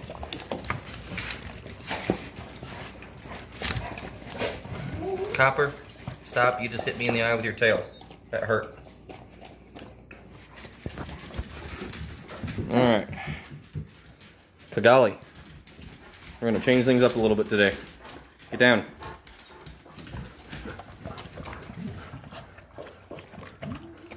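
A large dog eats noisily from a metal bowl.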